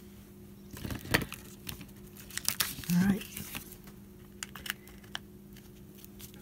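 A card scrapes and rustles across paper.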